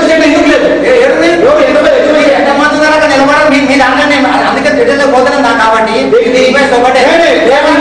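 A crowd of men talk and murmur over one another.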